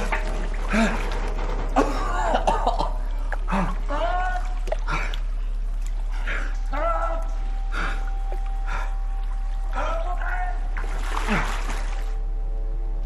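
Water splashes and sloshes around.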